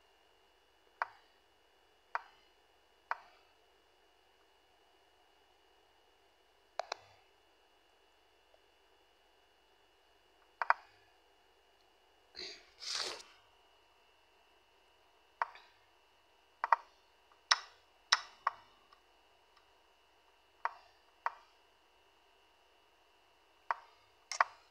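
Sharp clicks sound as chess pieces are moved in an online game.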